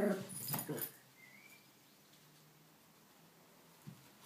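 Two small dogs scuffle playfully on a carpet.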